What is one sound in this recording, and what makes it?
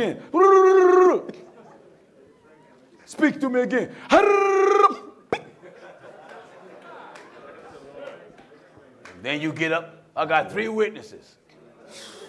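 A man preaches with fervour through a microphone, drawing out some words in long, sung tones.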